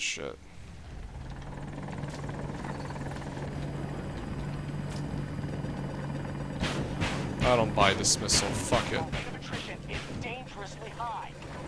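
A helicopter's rotor and engine drone steadily.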